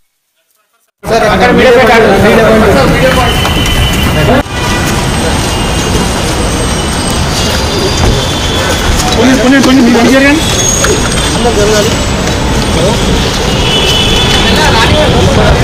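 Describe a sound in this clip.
A crowd of men chatter and call out around a car.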